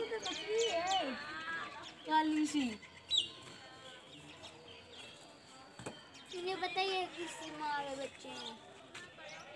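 A young goat kid bleats.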